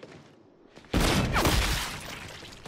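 A heavy gun fires in loud bursts with explosions.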